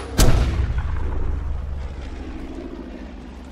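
A loud blast booms and slowly rumbles away.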